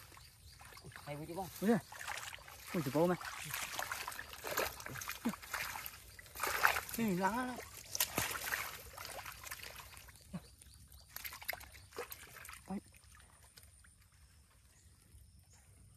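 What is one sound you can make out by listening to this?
Hands splash and slosh in shallow muddy water.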